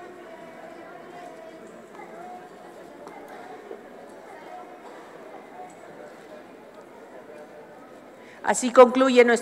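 A crowd murmurs quietly in an echoing hall.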